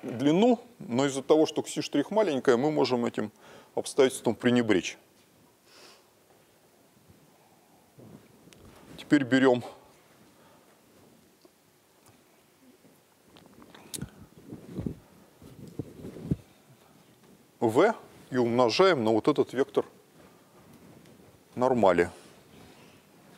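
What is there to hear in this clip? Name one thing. A middle-aged man lectures in a large hall.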